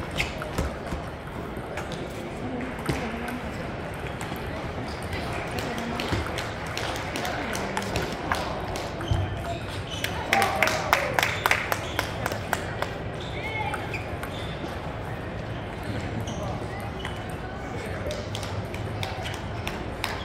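A ping-pong ball clicks sharply back and forth between paddles and table.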